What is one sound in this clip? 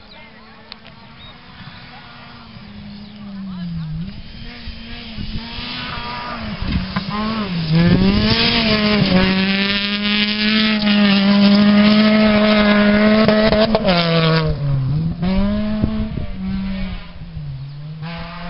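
A rally car's engine revs hard, rising and falling as it shifts gears, growing louder as it approaches and fading as it drives away.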